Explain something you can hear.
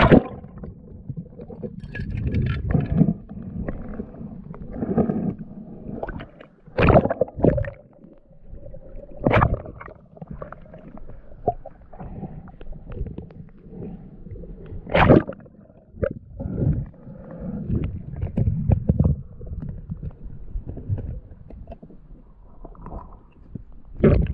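Water sloshes and bubbles around an underwater microphone.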